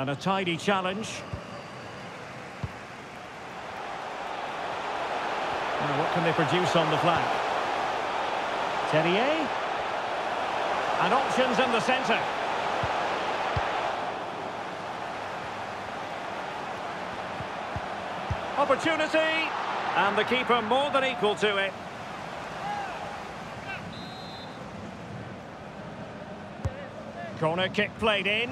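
A large crowd roars and chants in a stadium.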